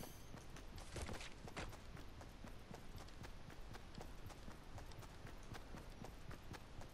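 Quick game footsteps patter on the ground.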